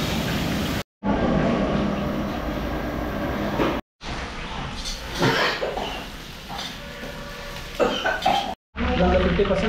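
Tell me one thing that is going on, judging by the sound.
A spatula scrapes and stirs food in a metal wok.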